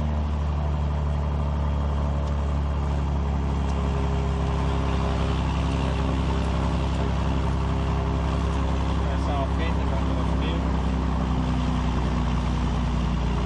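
A small plane's propeller engine drones loudly and steadily from inside the cockpit.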